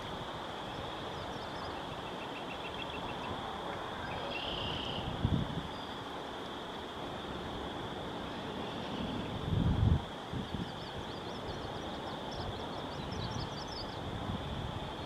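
A small bird sings high, quick trills nearby.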